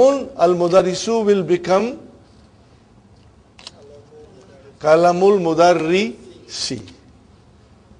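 An elderly man speaks calmly and clearly, as if teaching, close by.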